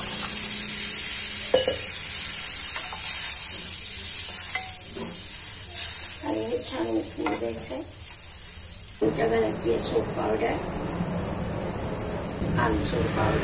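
Sauce simmers and bubbles in a pan.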